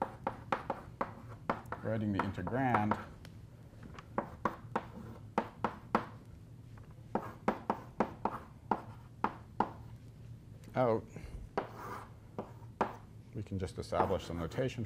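Chalk taps and scrapes rapidly on a blackboard.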